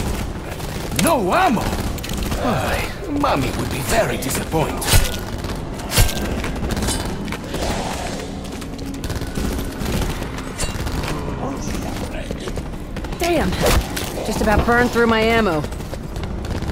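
Zombies growl and screech nearby.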